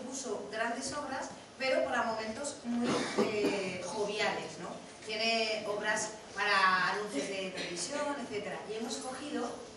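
A woman speaks into a microphone in a large room.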